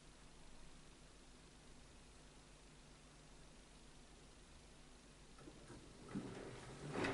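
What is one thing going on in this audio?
A washing machine motor hums quietly.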